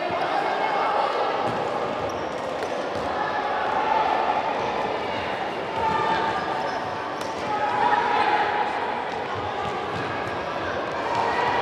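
A ball thumps as it is kicked.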